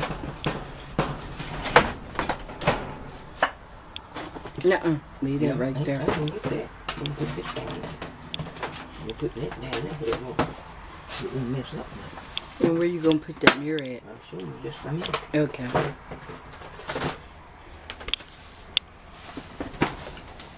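Plastic bags rustle and crinkle as hands rummage through them.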